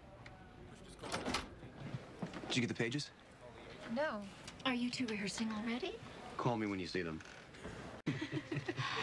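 A young woman speaks casually.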